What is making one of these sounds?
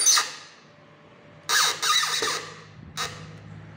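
A cordless drill whirs in short bursts.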